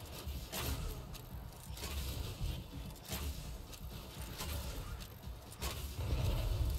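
A bow fires arrows with sharp snaps.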